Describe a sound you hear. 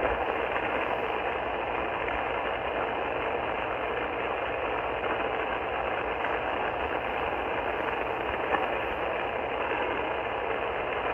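A radio receiver hisses with steady static from its small loudspeaker.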